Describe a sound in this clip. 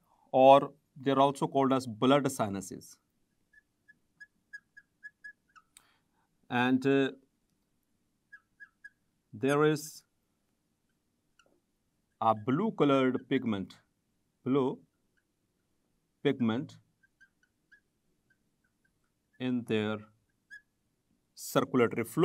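A man speaks calmly and clearly into a close microphone, in short phrases with pauses.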